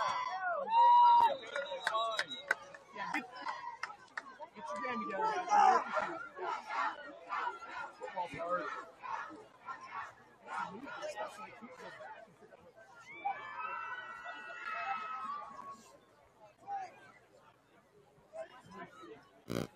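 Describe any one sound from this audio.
A crowd in the stands cheers and shouts outdoors.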